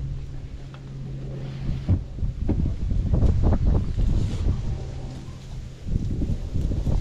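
Water laps gently against the hull of a small boat.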